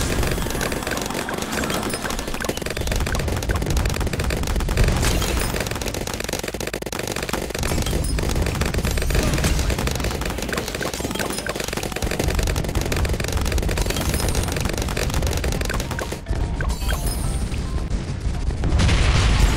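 Rapid game gunfire and explosions pop and crackle without pause.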